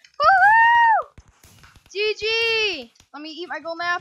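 Fireworks pop and crackle.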